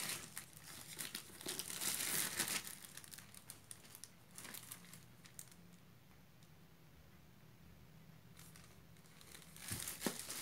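Plastic wrapping crinkles and rustles under handling.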